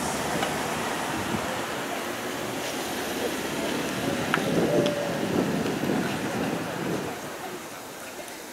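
A car drives past close by on the road.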